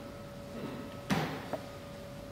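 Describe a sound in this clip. A man's body thuds onto a wooden stage floor.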